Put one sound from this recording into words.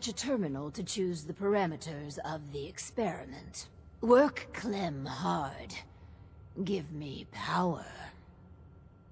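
An elderly man with a raspy voice speaks with animation.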